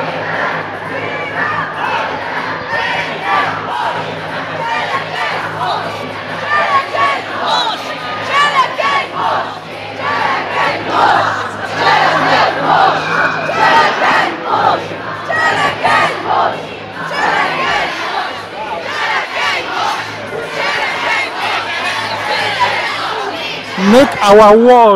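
A large crowd of young people chatters and chants nearby outdoors.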